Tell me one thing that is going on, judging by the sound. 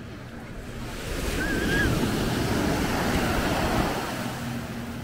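Small waves break and wash up onto the shore.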